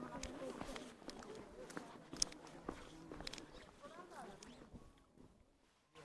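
A group of people chat in the distance outdoors.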